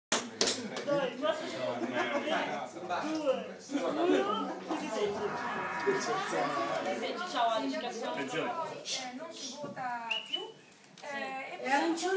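Several men and women talk at once nearby with animation.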